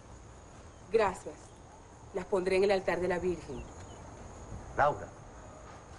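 A young woman speaks warmly and laughs.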